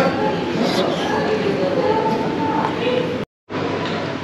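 An elderly man slurps noodles loudly.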